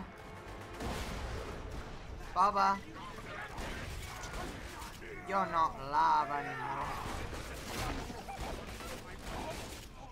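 Shotgun blasts boom in quick bursts.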